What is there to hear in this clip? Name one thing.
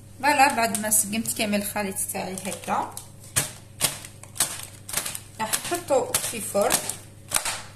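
Baking paper crinkles and rustles as it is handled.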